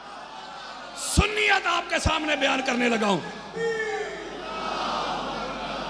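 A man speaks forcefully and with emotion into a microphone, his voice amplified over a loudspeaker.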